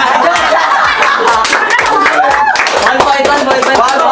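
Young men clap their hands.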